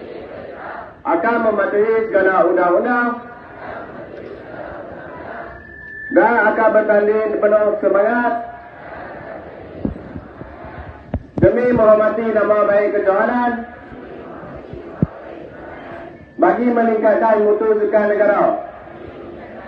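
A large crowd repeats the words loudly in unison.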